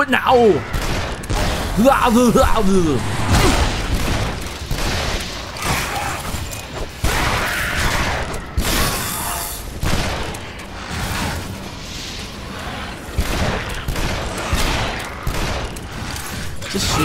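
Gunshots boom sharply again and again.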